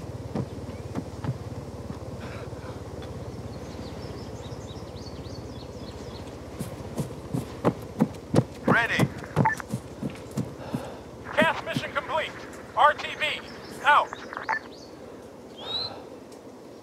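Footsteps crunch over gravel and grass.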